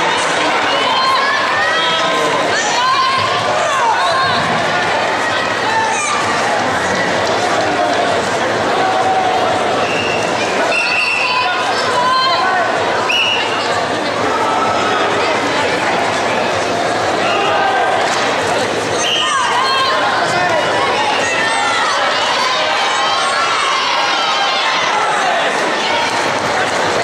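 A large crowd chatters and shouts throughout a big echoing hall.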